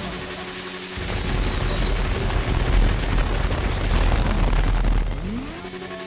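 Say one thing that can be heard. Fireworks crackle and burst loudly.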